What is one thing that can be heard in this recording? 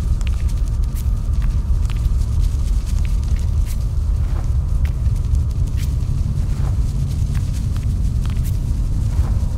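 Stone breaks apart with a deep, steady rumble.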